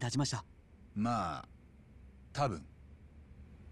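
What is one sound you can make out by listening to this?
A man answers quietly.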